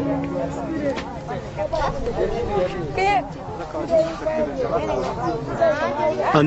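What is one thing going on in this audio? A crowd of men and women talk and call out nearby.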